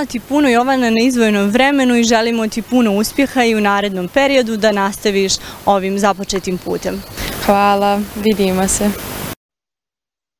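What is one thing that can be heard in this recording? A teenage girl speaks calmly and closely into a microphone.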